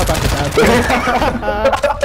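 Gunshots fire in a rapid burst.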